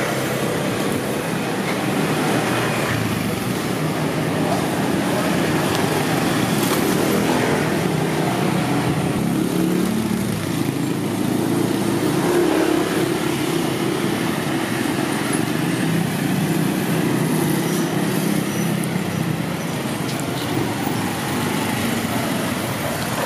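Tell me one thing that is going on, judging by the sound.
Motorbike engines hum and putter nearby.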